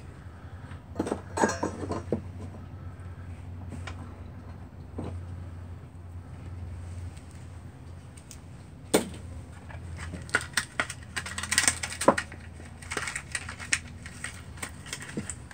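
Metal parts clink and rattle as hands handle them.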